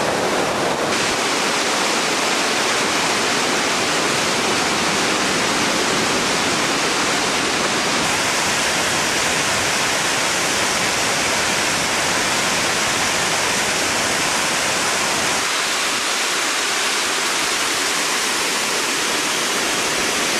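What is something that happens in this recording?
Water pours over a weir and roars steadily into churning water below.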